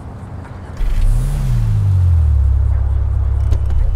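A car engine starts and idles with a low steady rumble.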